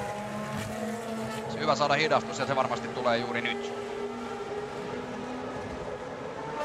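A racing car engine hums steadily at high speed.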